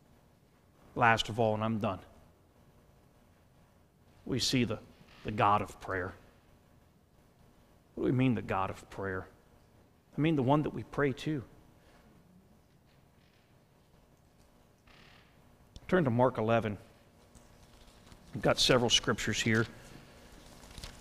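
A man speaks slowly and calmly through a microphone, with long pauses.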